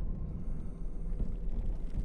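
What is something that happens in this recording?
Footsteps crunch on a dirt floor.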